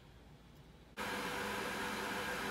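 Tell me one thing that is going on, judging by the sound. An electric kettle rumbles as water heats inside it.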